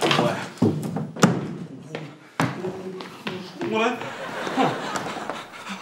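A man talks loudly with animation nearby.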